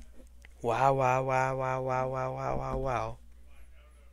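A young man exclaims over and over with excitement, heard through a recording.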